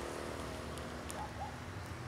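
High heels click on pavement as a woman walks away.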